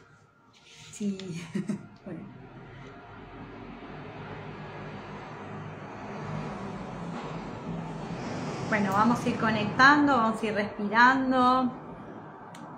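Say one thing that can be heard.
A middle-aged woman speaks softly and close by.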